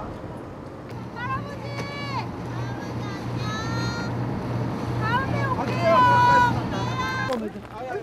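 Two young men shout farewells from a distance.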